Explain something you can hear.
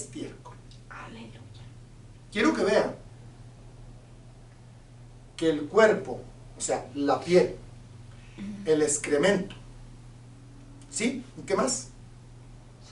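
A middle-aged man speaks with animation into a microphone, pausing often.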